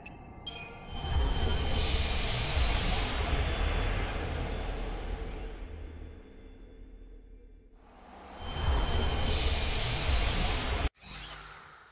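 A magical shimmering whoosh swells and slowly fades.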